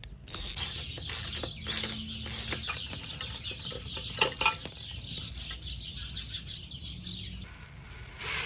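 A ratchet wrench clicks rapidly while loosening a bolt.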